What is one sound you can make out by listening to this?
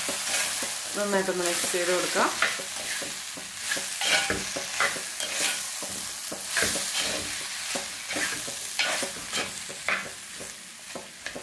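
Food sizzles and hisses in a hot pot.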